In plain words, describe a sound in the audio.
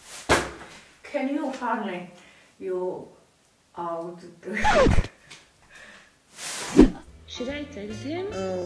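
A young woman speaks quietly and close by, with pauses.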